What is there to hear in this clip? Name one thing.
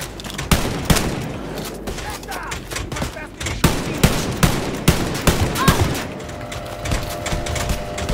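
A heavy gun fires in loud bursts of shots.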